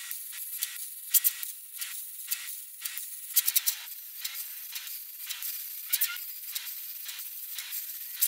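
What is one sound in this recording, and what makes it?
A welding torch crackles and sizzles steadily with sharp pops.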